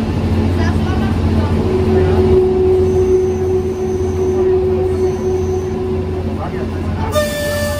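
A train engine rumbles steadily as the train rolls along the track.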